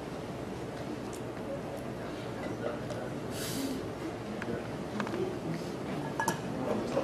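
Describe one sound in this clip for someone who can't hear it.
A man speaks calmly at a distance in a large echoing hall.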